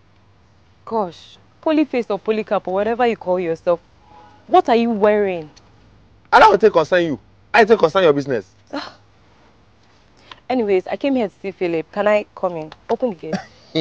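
A young woman answers sharply, close by.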